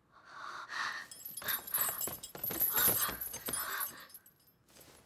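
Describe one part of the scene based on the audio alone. Clothing rustles as people move and kneel down.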